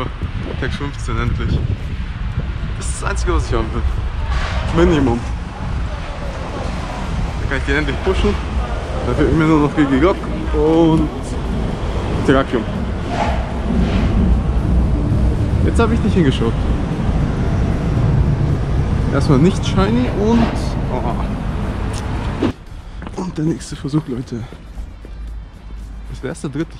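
A young man talks close up, in a casual, animated way.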